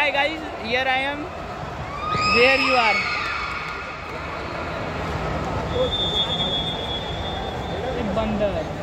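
A crowd of young men calls out and chatters in a large echoing hall.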